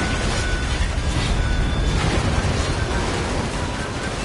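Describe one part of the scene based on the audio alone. A sword clangs against metal.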